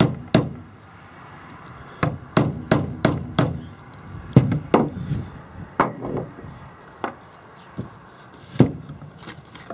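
Metal tool parts clink and tap against each other.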